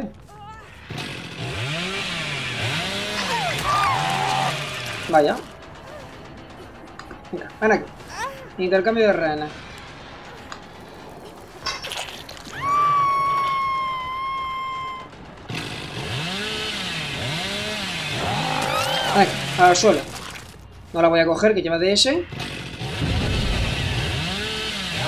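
A chainsaw revs and roars.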